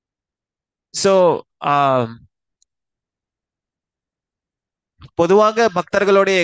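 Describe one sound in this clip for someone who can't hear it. A man sings loudly into a headset microphone, heard through an online call.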